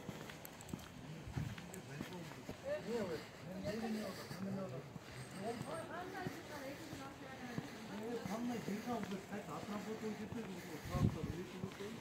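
Footsteps walk on pavement close by.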